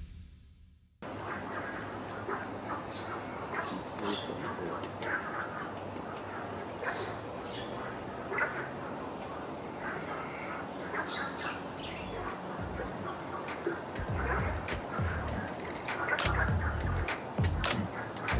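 A small bird chirps softly nearby.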